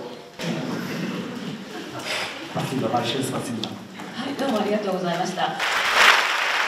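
A middle-aged woman laughs through a microphone.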